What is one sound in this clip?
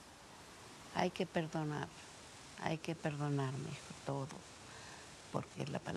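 An elderly woman speaks calmly and slowly, close by.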